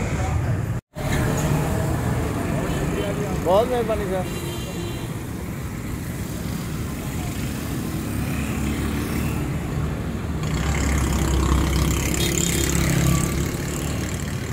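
Motorcycle engines rumble past on a road.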